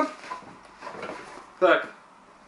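Fabric rustles as a backpack is rummaged through.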